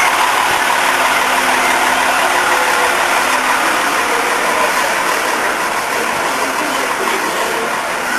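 Children shout and sing excitedly outdoors.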